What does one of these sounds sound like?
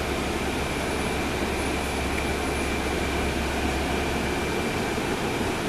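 A bus engine rumbles steadily from inside the bus as it drives.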